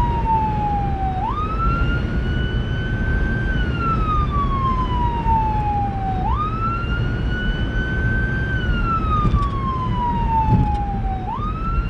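Tyres roll steadily over the road with a low rumble from inside a moving car.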